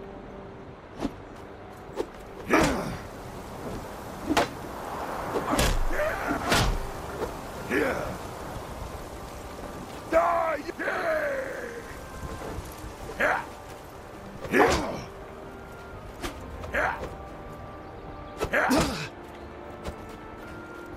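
Weapons clash and thud against a wooden shield in sharp blows.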